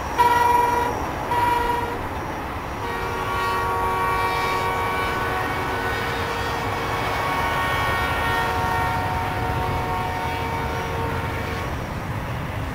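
A distant steam locomotive's whistle blows in long blasts.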